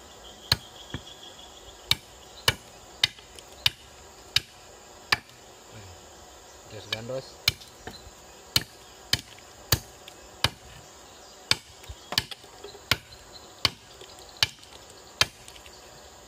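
A metal blade chops sharply into wood again and again.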